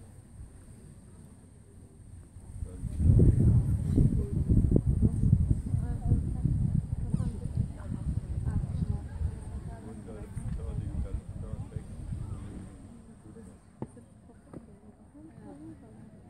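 A horse canters with soft thuds of hooves on sand.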